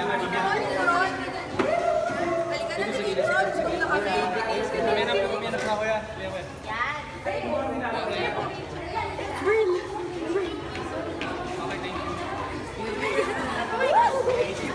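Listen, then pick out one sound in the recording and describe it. A crowd of young people chatters and calls out excitedly close by.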